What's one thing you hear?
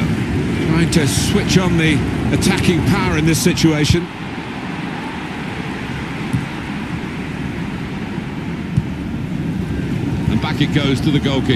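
A stadium crowd roars steadily in the background.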